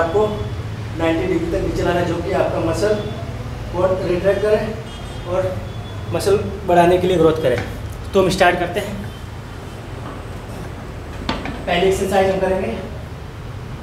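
A young man talks calmly and clearly, close by.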